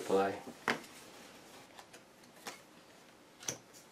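A playing card is set down softly on a table.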